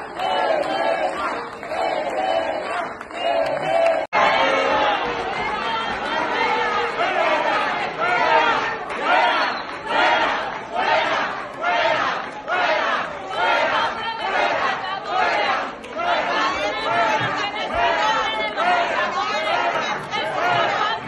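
A crowd chants loudly in rhythm in a large echoing hall.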